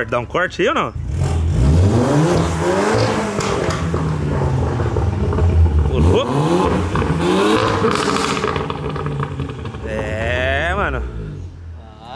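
A car engine revs loudly, rising and falling in pitch.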